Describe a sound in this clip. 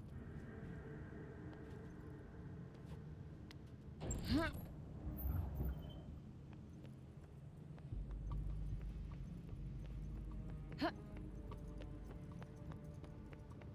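Footsteps patter on a stone floor.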